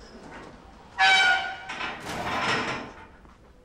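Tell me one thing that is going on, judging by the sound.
A metal barred gate clangs shut with a ringing echo.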